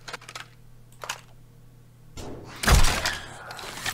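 A crossbow clicks as it is loaded.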